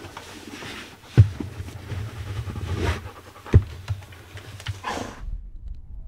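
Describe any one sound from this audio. Shoelaces swish and tug as a boot is laced.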